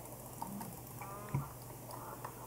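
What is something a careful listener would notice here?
A chicken clucks.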